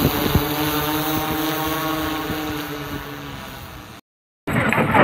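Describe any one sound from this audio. A quadcopter drone buzzes as it hovers overhead.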